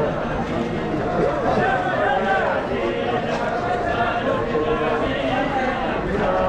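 A large crowd of men chants loudly together outdoors.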